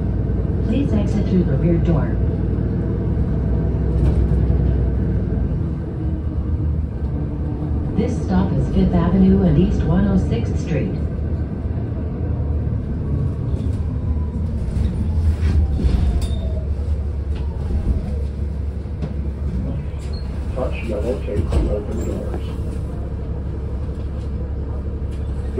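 A vehicle rumbles steadily as it drives along a street.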